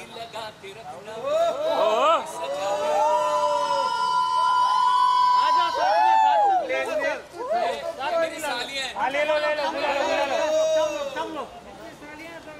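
A young man calls out cheerfully nearby.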